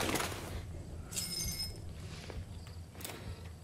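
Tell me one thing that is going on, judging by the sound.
Broken glass crunches and tinkles underfoot.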